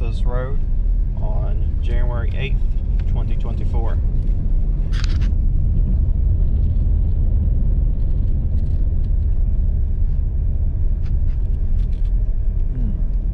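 Tyres roll and rumble over a rough road.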